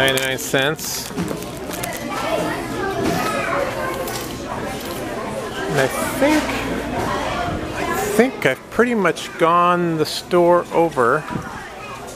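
Many people chatter in the background of a busy indoor space.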